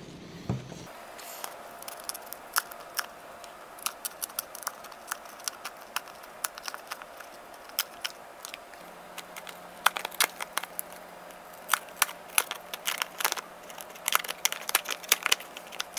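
Plastic wrap crinkles and crackles close by.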